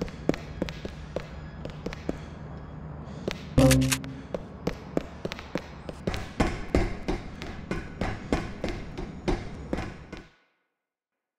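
Footsteps tap on a hard floor in a hollow, echoing space.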